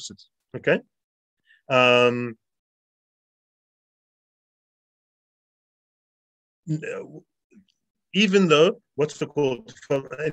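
A man speaks calmly, in pauses, through an online call.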